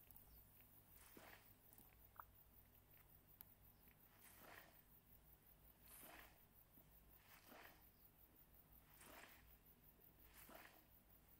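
Soil rustles and scrapes as seeds are planted.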